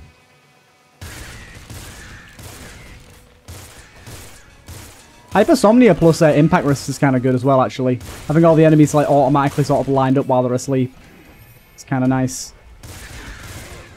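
Video game gunfire pops and crackles in rapid bursts.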